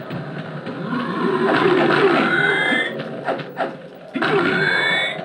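Video game effects whoosh and rise in pitch.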